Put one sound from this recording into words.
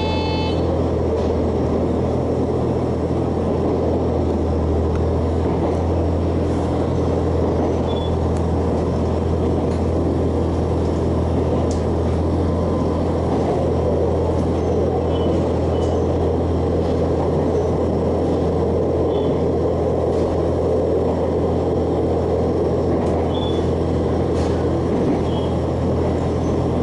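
A train carriage rattles and creaks faintly as it moves.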